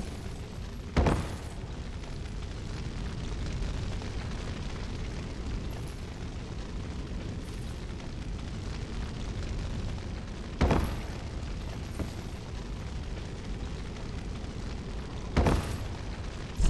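A heavy body lands with a loud thud.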